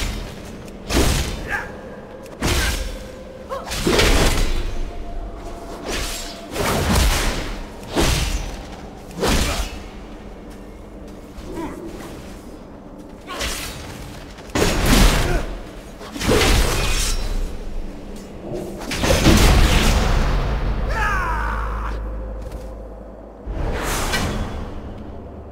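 Game spell effects burst and crackle in quick bursts.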